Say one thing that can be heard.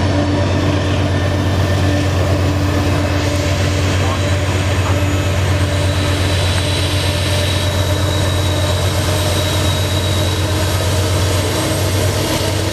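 A diesel locomotive engine rumbles loudly and steadily as a train approaches.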